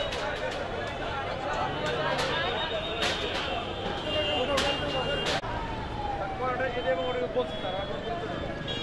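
A crowd of men talks at once outdoors.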